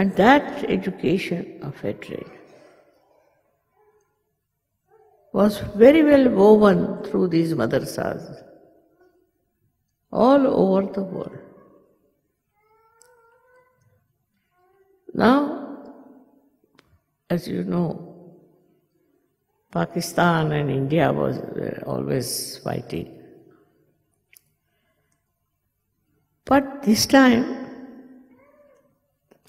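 An elderly woman speaks calmly into a microphone, in phrases with long pauses.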